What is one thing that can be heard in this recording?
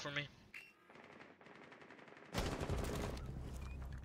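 Rifle shots crack.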